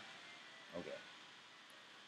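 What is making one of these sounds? A short electronic blip sounds.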